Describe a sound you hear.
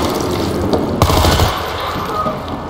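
A rifle fires a burst of gunshots.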